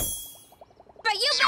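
A young girl exclaims in a high, surprised cartoon voice.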